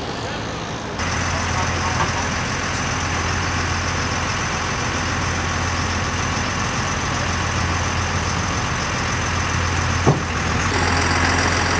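A truck engine idles nearby with a low steady hum.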